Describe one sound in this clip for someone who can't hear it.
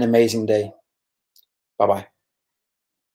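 A man speaks calmly and close to a microphone, with pauses.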